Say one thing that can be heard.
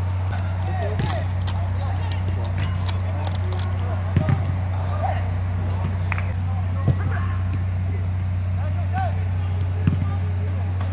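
A football thuds off a player's foot.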